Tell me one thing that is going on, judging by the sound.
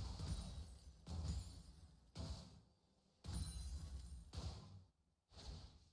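Game combat effects whoosh and crackle in short bursts.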